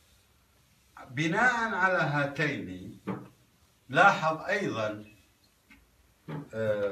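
An older man speaks close by, lecturing steadily.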